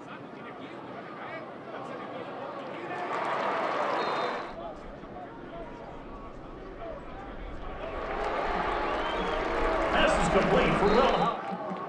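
A large stadium crowd roars and cheers, swelling loudly twice.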